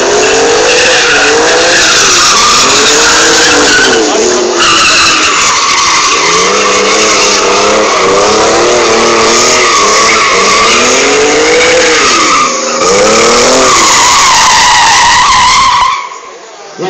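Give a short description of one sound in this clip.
Tyres screech loudly on asphalt.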